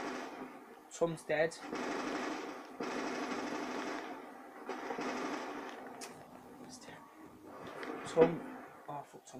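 Gunshots from a video game crack through a loudspeaker.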